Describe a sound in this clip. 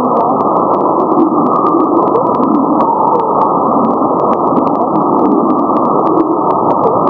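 Radio static hisses steadily, crackling with rapid sharp clicks.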